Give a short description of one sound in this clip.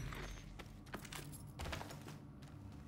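Gear thuds as a body lands after a vault.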